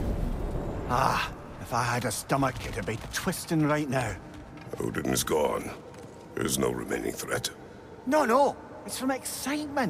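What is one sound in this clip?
A deep-voiced man speaks calmly.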